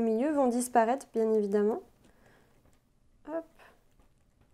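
A woman speaks brightly and close by.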